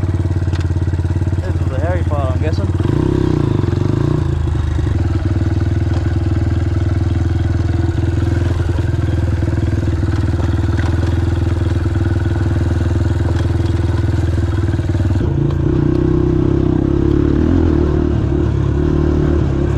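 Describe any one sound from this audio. A dirt bike engine drones loudly and steadily up close, rising in pitch briefly.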